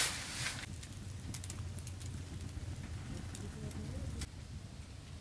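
A wood fire crackles softly inside a stove.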